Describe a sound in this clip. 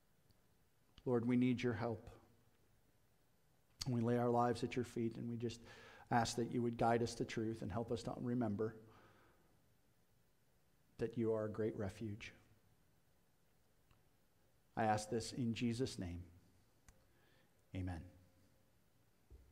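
A middle-aged man speaks calmly through a microphone in a large room, with pauses between phrases.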